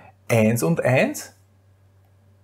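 A middle-aged man speaks briefly and calmly into a close microphone.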